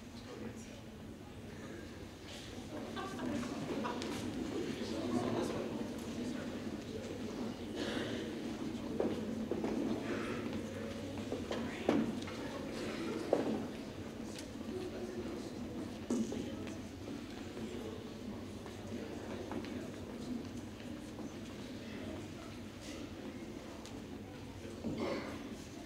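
A group of young men sings together in a large hall.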